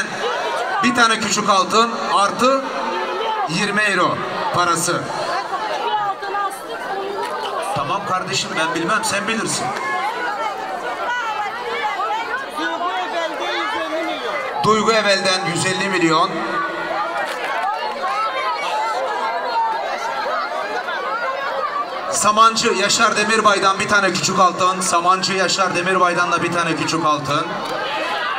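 An older man sings loudly through a microphone and loudspeakers.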